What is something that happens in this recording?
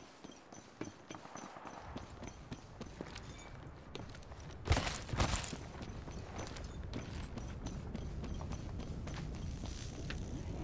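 Footsteps thud quickly on hard ground as a game character runs.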